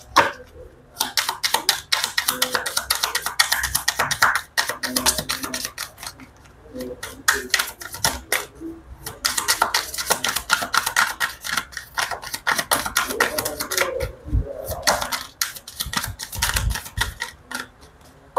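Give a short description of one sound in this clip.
Playing cards shuffle with rapid, crisp flicking.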